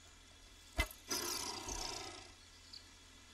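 A creature shrieks in pain.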